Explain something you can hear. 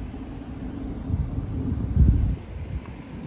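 A car drives past on the road nearby.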